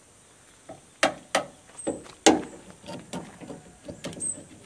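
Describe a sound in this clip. Metal clanks and knocks against metal.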